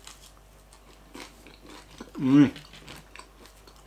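A young man eats noisily, chewing close by.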